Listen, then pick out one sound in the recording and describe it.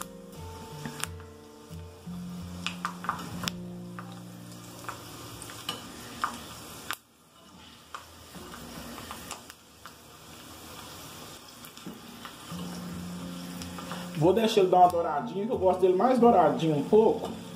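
A metal skimmer clinks and scrapes against a pot.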